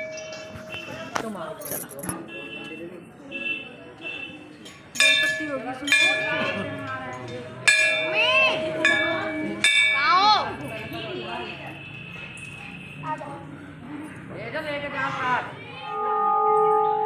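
Children shout and call out nearby.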